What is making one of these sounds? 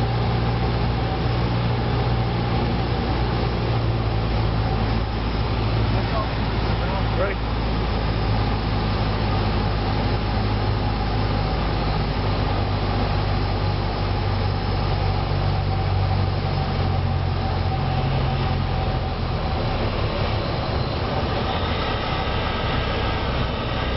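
A small propeller plane's engine drones loudly and steadily close by.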